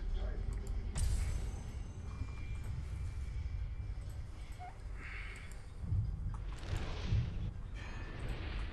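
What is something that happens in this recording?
A soft whoosh sounds as a menu switches.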